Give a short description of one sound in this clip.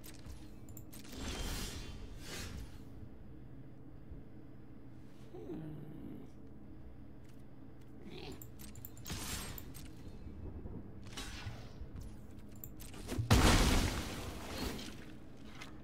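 Soft whooshing game sound effects play as cards move.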